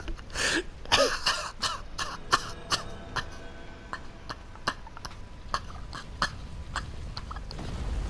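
Footsteps tap on stone in an echoing space.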